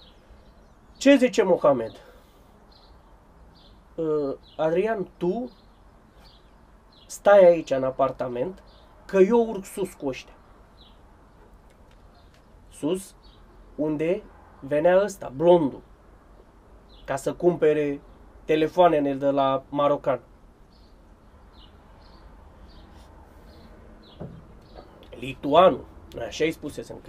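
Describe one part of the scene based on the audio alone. A man talks calmly and close by, with pauses.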